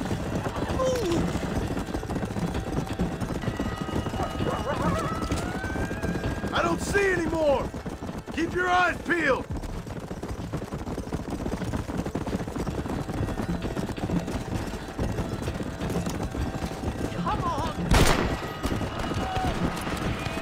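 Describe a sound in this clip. Horses gallop with rapid hoofbeats on a dirt track.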